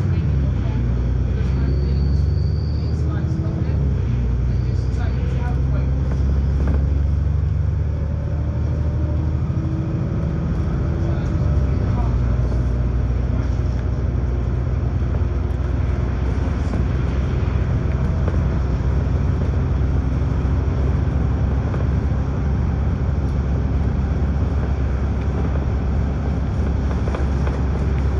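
A bus engine rumbles steadily and close.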